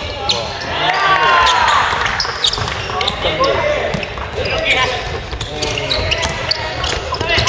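Sneakers squeak sharply on a hardwood floor in a large echoing hall.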